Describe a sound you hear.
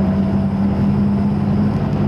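A fountain splashes steadily into a basin.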